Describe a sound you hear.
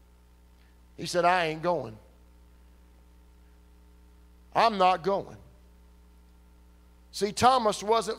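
A middle-aged man speaks slowly and with emphasis through a microphone, in short bursts with pauses.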